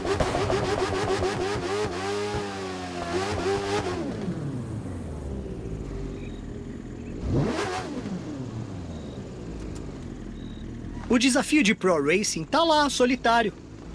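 A motorcycle engine idles steadily.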